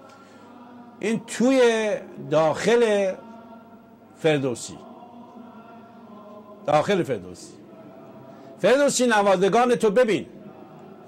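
A man sings loudly in short bursts.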